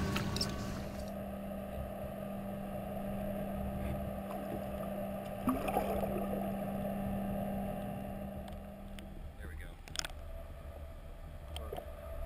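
Water churns in a low, muffled rumble heard from under the surface.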